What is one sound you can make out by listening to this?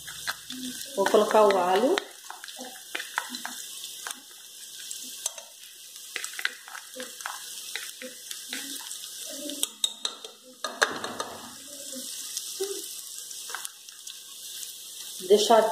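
A knife scrapes and taps against a metal pot.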